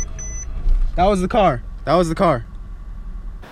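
A young man calls out in front of a car.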